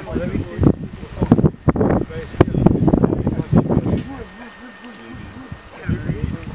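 Water splashes as a man wades through a shallow stream.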